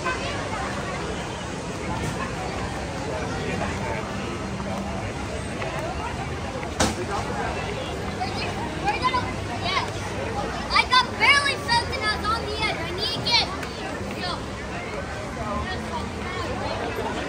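A crowd chatters steadily outdoors all around.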